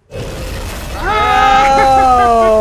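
A man shouts excitedly close by.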